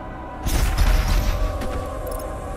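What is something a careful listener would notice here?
A heavy gun fires with a loud roaring blast.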